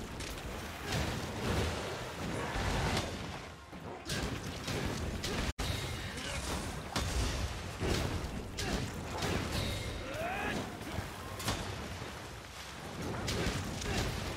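Fiery explosions burst again and again.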